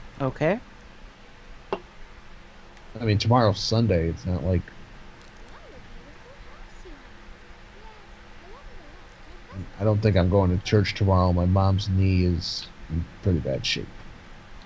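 A young girl talks playfully, acting out voices for her dolls.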